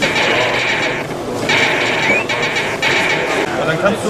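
A video game plays fast electronic buzzing and beeping sounds.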